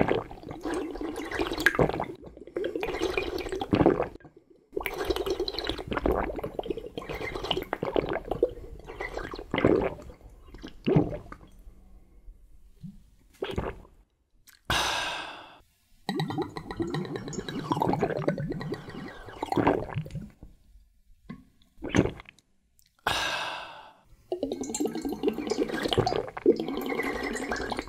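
A man gulps down liquid loudly and steadily.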